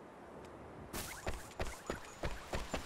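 Quick footsteps patter on stone.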